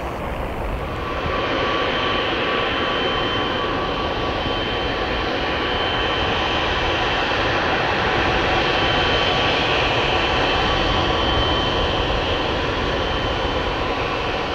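A jet engine whines steadily at idle, with a high hum over a rushing roar.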